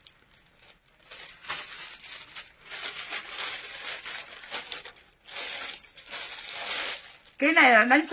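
Plastic wrapping rustles and crinkles as clothes are handled.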